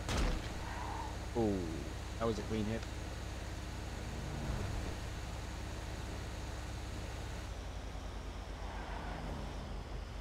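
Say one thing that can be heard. A truck engine drones steadily as it drives along a road.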